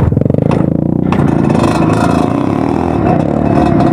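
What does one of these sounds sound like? Another dirt bike engine buzzes nearby.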